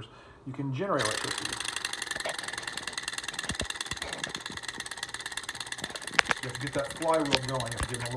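A small engine whirs and clicks rapidly and steadily.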